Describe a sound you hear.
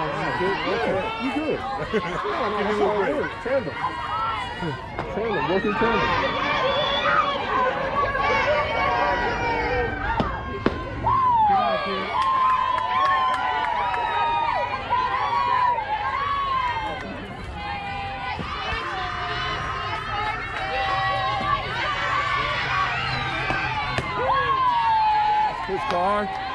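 Girls shout and cheer loudly from close by, outdoors.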